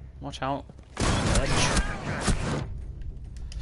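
Gunshots fire in a rapid burst, close by.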